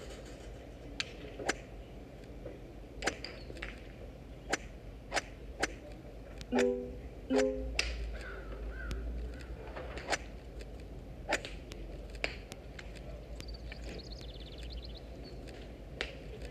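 Game cards flip and snap with short clicks.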